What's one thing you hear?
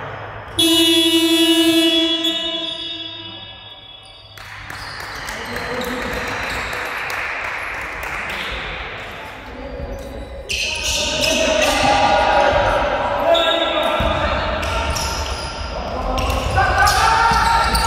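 Sneakers squeak on a wooden floor in a large echoing hall.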